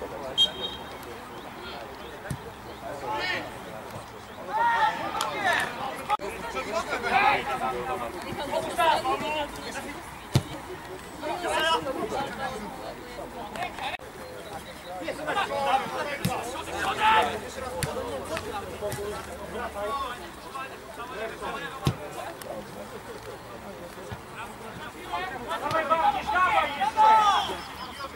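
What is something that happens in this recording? Men shout to each other across a grass pitch outdoors.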